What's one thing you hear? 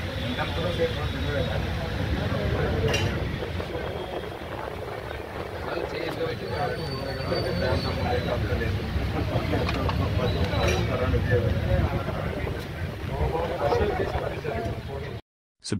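Several men talk over each other nearby.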